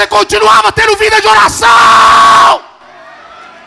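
A man speaks loudly and with passion through a microphone in a large hall.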